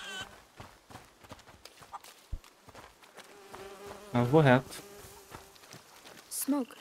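Footsteps patter quickly on a dirt path.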